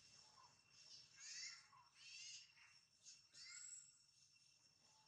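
A baby monkey squeaks in short high cries.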